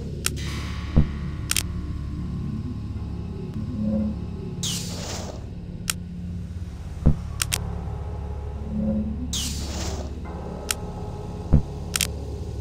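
A wooden peg knocks into place with a sharp click.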